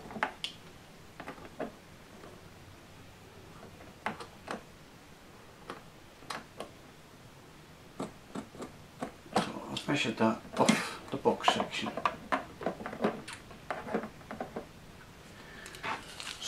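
Light plastic parts click and tap as a small model is handled.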